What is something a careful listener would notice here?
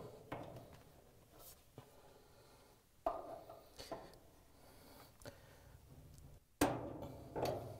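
A screwdriver clinks and scrapes against metal parts.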